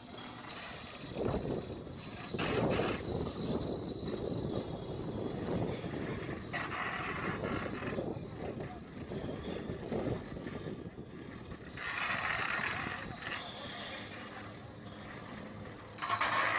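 Metal poles clank against scaffolding.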